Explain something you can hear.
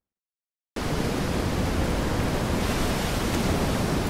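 Rough sea waves crash and churn.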